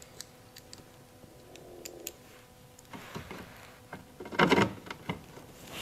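A hand screwdriver turns a screw into a car's side skirt.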